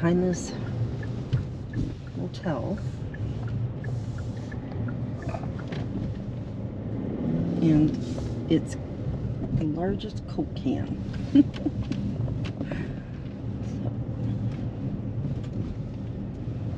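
A middle-aged man talks calmly and closely inside a car.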